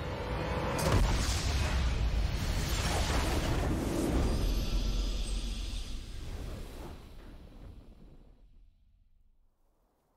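A triumphant fanfare swells, then slowly fades away.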